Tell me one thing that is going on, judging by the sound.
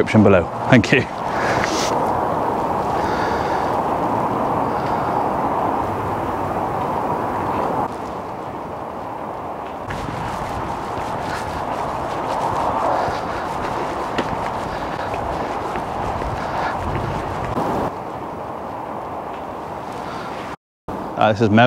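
Wind blows outdoors, buffeting the microphone.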